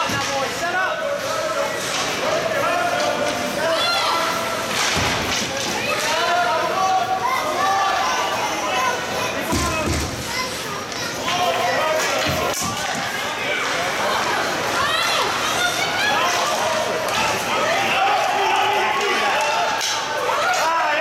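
A crowd of spectators cheers and shouts in a large echoing rink.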